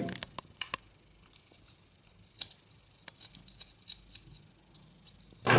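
A screwdriver turns a small screw with faint clicks.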